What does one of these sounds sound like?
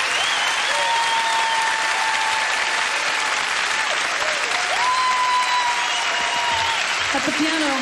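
A woman sings sustained notes into a microphone over a loudspeaker.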